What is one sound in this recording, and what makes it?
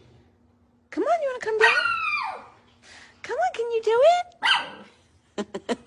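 A small dog yelps and whines in high rising and falling cries.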